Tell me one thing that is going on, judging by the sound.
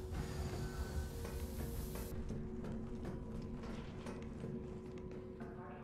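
Footsteps clatter on metal stairs.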